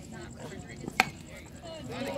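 A metal bat strikes a ball with a sharp ping.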